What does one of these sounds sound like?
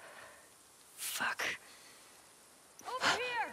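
A young woman groans and swears under her breath, close by.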